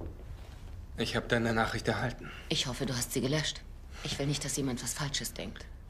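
A woman speaks close by, calmly.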